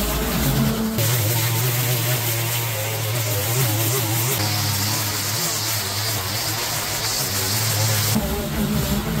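A string trimmer whines steadily as it cuts weeds.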